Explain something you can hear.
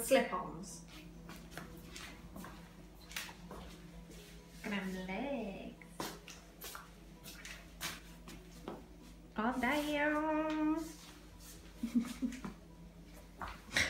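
Slippers slap and scuff on a hard tiled floor.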